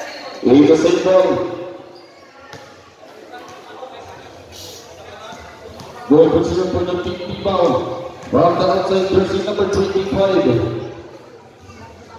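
Sneakers squeak on a court floor.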